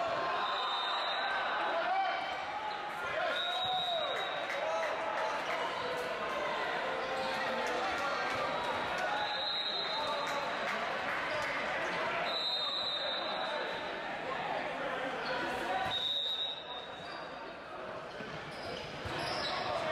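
Young men shout and call to one another across the court.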